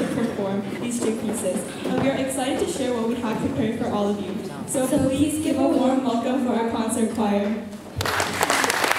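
Two young women sing together into microphones, heard through loudspeakers in a large hall.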